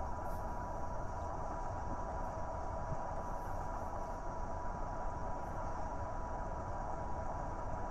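A spacecraft engine rumbles steadily.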